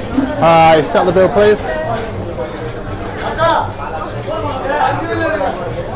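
A woman talks cheerfully across a counter.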